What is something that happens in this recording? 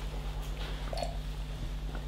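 A man sips a drink from a mug.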